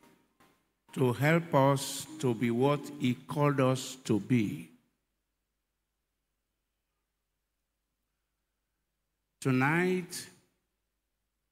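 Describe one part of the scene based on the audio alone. A man speaks with emphasis into a microphone, heard through loudspeakers.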